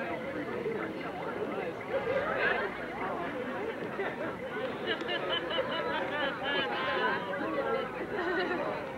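A crowd of young men and women chatter close by outdoors.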